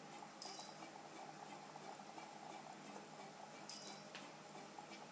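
A bright electronic chime rings out twice from a handheld game.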